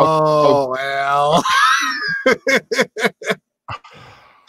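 A man laughs loudly through a headset microphone in bursts.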